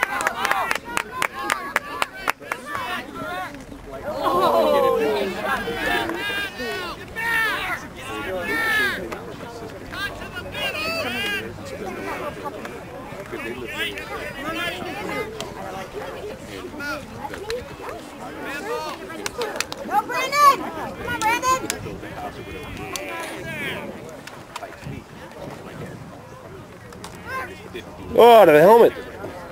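Spectators shout and cheer outdoors.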